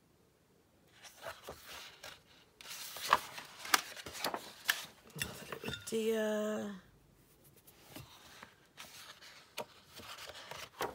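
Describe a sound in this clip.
Hands brush softly across paper.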